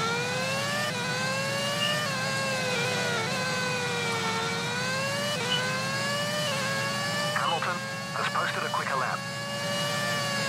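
A racing car engine whines at high pitch, rising and falling as it shifts gears.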